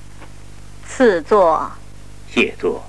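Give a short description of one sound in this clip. A woman speaks calmly and commandingly.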